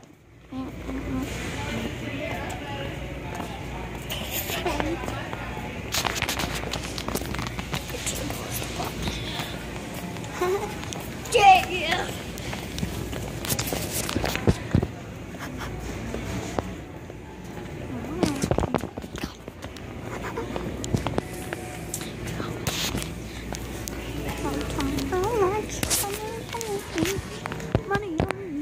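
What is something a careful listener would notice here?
Fabric rubs and knocks against a phone's microphone.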